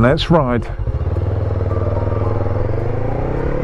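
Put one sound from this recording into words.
A motorcycle engine revs up and accelerates, rising in pitch.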